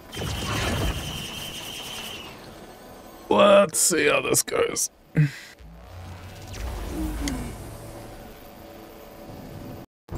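A swirling magic portal whooshes and hums.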